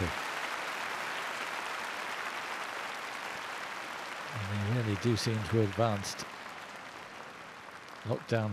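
A large crowd applauds and cheers in a big echoing arena, slowly fading.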